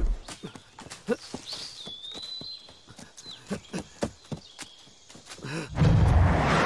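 Footsteps run quickly through dry leaves and twigs.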